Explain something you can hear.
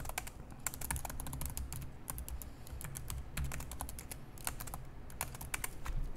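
Keys clatter rapidly on a keyboard close to the microphone.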